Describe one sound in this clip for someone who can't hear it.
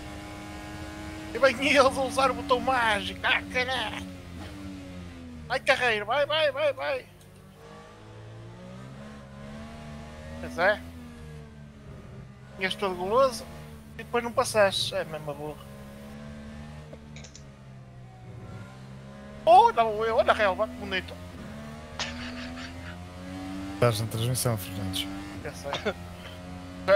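A single-seater race car engine drones at speed, its pitch rising and dropping as it shifts gears.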